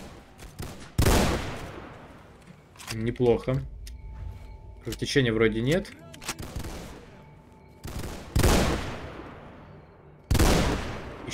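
A rifle fires loud single shots that echo and fade away.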